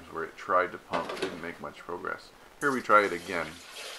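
A dishwasher door latch clicks and the door swings open.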